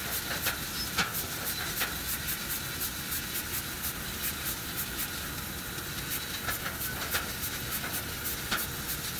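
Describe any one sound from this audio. A laser cutter hisses and crackles as it cuts metal.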